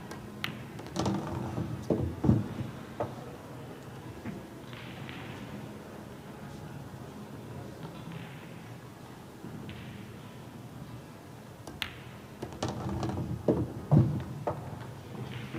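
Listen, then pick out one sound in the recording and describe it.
Pool balls click against each other and knock into a pocket.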